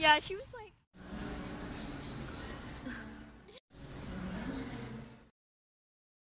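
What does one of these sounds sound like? A teenage girl exclaims loudly in a large indoor space.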